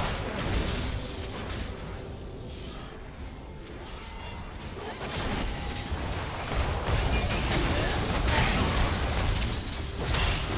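Spells burst and weapons clash in a fast video game battle.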